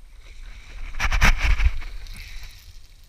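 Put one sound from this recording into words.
Water splashes close by.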